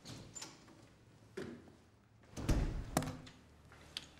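A door opens and shuts with a thud.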